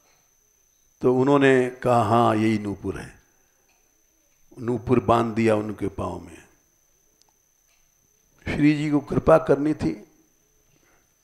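An elderly man speaks calmly through a close microphone, in short phrases with pauses.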